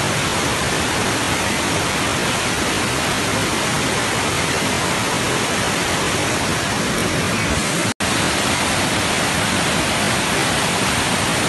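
A muddy flood stream rushes and roars loudly over rocks.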